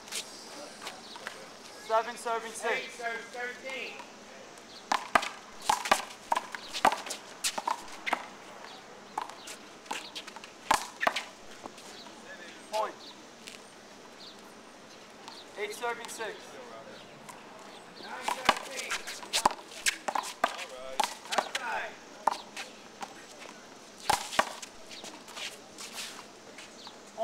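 A rubber ball bounces on the pavement.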